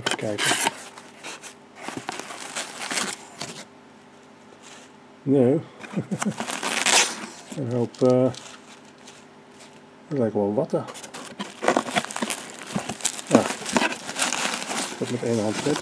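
Plastic packing material rustles and crackles.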